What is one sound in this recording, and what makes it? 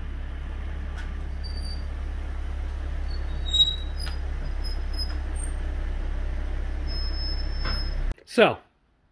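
A car engine rumbles low and steady as the car rolls slowly forward.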